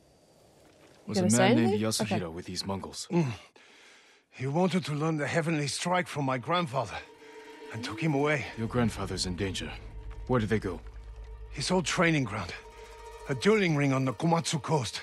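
A man talks calmly into a microphone.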